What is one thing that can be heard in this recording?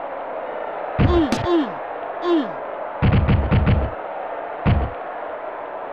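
Heavy thuds sound as football players collide.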